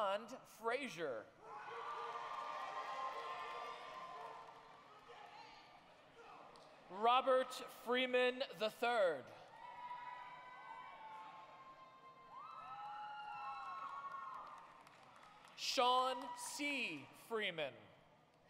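Voices in a crowd whoop and cheer loudly.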